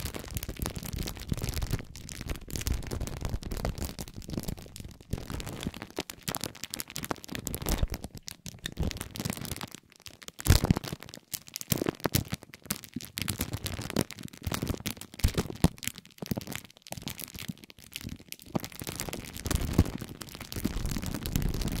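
A metal spiked roller crackles and crinkles as it rolls over plastic wrap close up.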